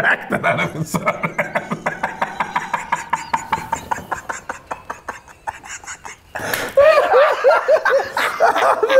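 Another young man laughs heartily close by.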